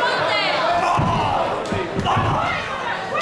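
A wrestler's body thuds against the ring mat.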